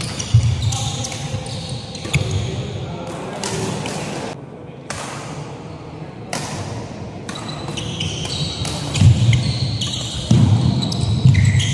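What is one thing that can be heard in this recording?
Rackets strike a shuttlecock back and forth in a large echoing hall.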